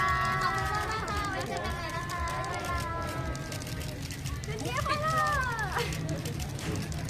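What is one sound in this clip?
Several young women greet together with animation, close by.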